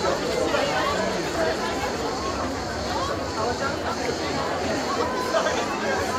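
A large crowd of men and women chatters outdoors.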